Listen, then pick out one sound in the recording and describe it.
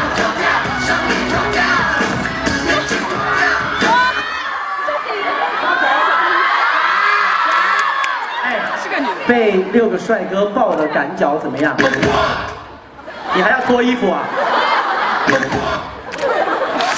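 A crowd screams and cheers loudly in a large hall.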